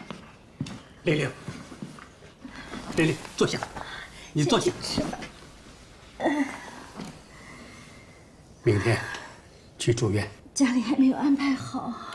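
An elderly man speaks softly and gently nearby.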